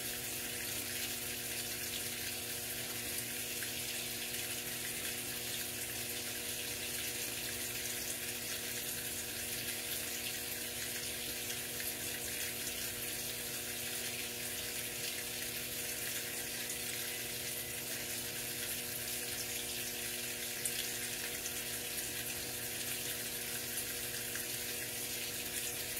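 Water pours steadily into a washing machine tub.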